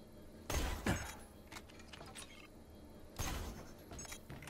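A gun fires a few loud shots.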